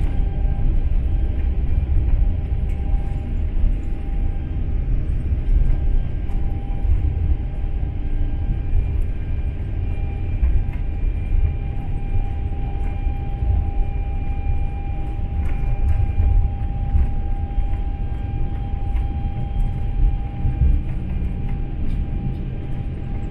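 Aircraft wheels rumble over the runway.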